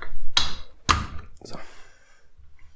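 Metal parts click and knock as a tool is tightened in a vise.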